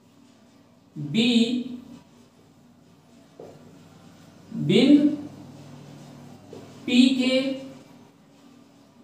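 A young man speaks in short, calm phrases close by.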